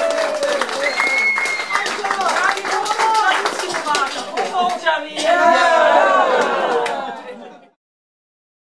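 A man sings loudly into a microphone.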